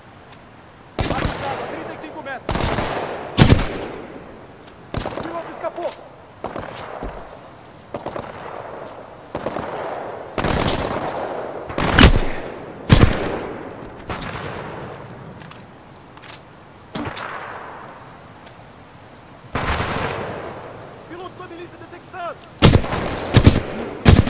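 Gunshots bang out in loud bursts, echoing afterwards.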